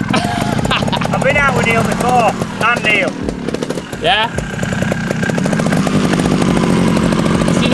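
A motorcycle engine idles steadily.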